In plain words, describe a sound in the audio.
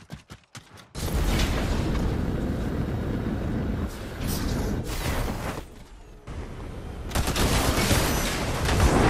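Jet thrusters roar steadily.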